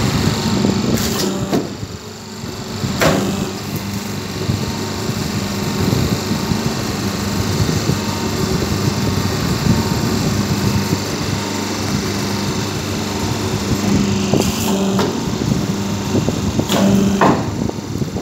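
Metal dies clank as plates are pressed and lifted out.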